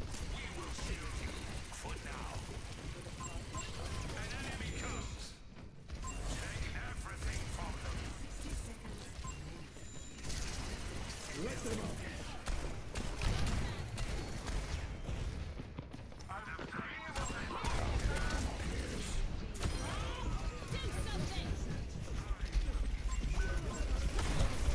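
Weapons fire in rapid bursts amid loud blasts.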